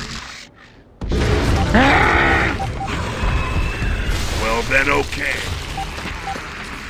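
A monster roars loudly.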